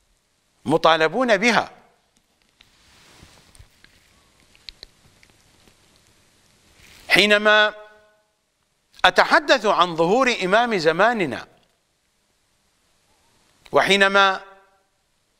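An older man speaks in a raised, chanting voice close to a microphone.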